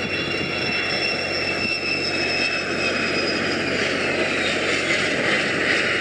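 A jet engine whines loudly and its pitch slides downward as a plane comes in to land.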